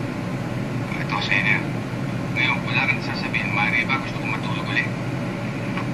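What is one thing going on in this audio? A man speaks in a muffled voice, heard through a loudspeaker.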